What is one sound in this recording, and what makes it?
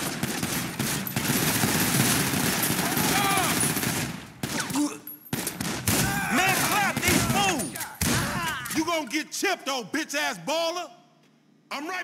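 Gunshots crack in rapid bursts close by.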